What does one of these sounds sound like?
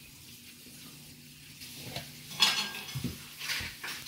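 A soft toy is set down on a small metal tin with a light knock.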